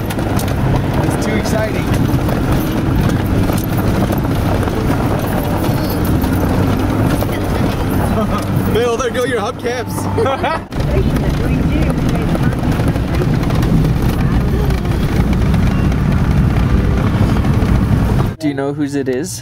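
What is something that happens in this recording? Tyres roll and crunch over a dirt road.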